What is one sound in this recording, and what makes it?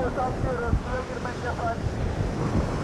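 A man calls out through a megaphone.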